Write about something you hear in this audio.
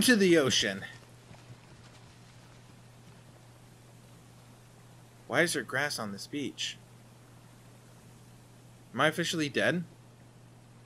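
A man speaks calmly and close to a microphone, in short bursts.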